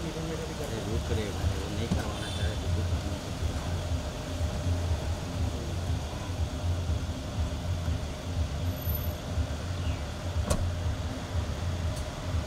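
A car engine idles with a low rumble.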